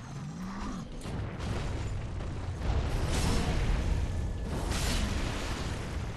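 Heavy weapons strike and clash loudly.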